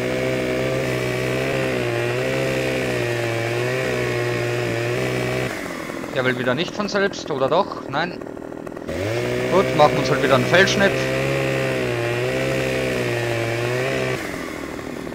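A chainsaw engine roars steadily as it cuts through wood.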